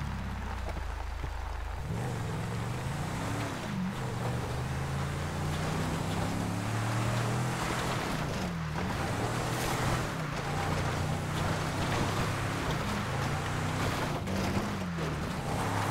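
A car engine hums and revs as a vehicle drives along.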